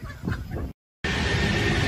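A subway train rumbles along the tracks.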